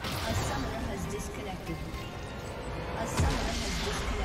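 Spell effects crackle and whoosh in a video game battle.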